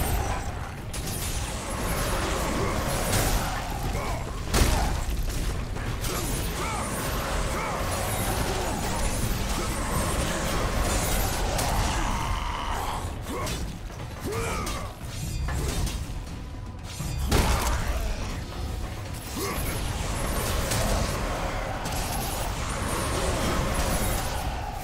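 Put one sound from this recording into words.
Metal weapons clang and thud against armored creatures.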